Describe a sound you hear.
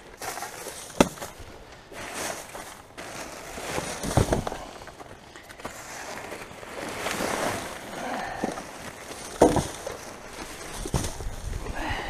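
Loose rubbish knocks and thumps now and then.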